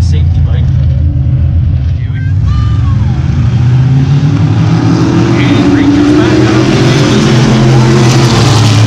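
Race car engines roar loudly around a track.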